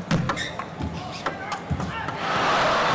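A ping-pong ball clicks quickly back and forth off paddles and a table.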